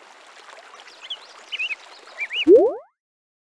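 Small cartoon creatures squeak in quick little chirps as they march.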